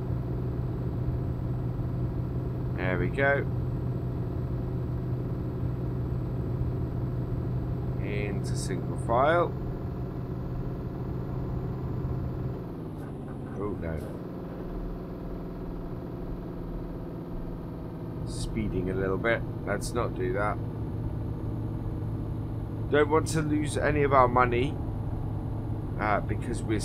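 A truck engine drones steadily, dropping in pitch as gears change.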